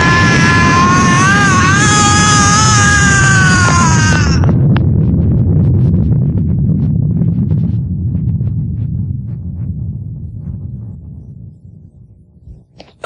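A huge blast roars and rumbles, slowly dying away.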